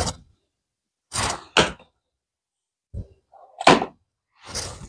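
A cardboard box is set down on a hard surface with a light knock.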